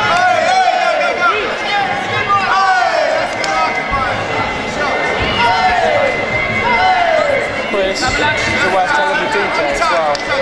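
A crowd shouts and cheers loudly in an echoing hall.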